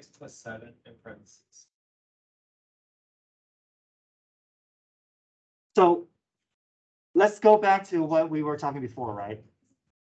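A man explains calmly through an online call microphone.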